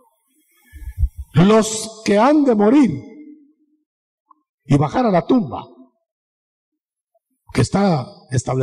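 An elderly man preaches with emphasis through a microphone.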